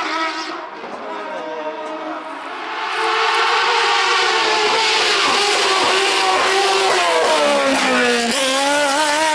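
A second race car engine roars up from a distance and rushes past close by.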